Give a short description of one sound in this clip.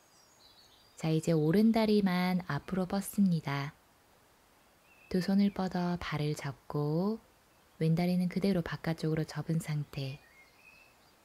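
A young woman speaks calmly and clearly, close by.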